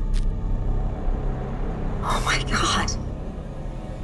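A woman speaks quietly through an online call.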